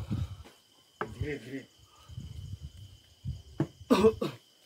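A wooden stick taps on stone paving.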